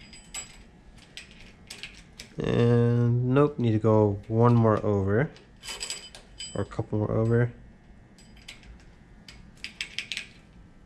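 A ratchet wrench clicks in short bursts.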